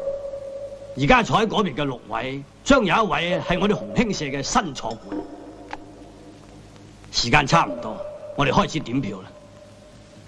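A man speaks firmly to a group in a large echoing hall.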